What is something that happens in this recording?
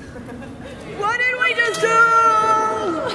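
A young woman shouts and cheers excitedly nearby.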